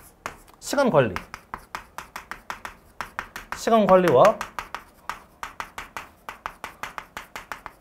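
Chalk taps and scratches quickly on a board.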